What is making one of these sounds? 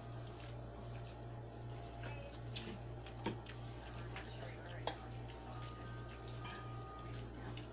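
Food crackles and rustles as hands pick it apart.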